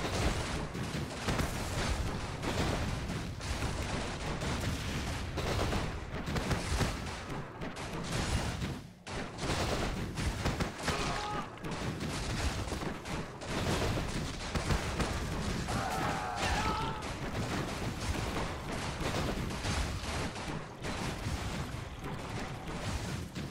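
Game sound effects of units and spells play.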